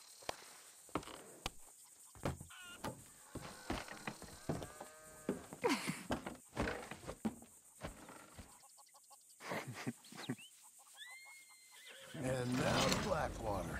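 A wooden wagon creaks and rattles as it rolls.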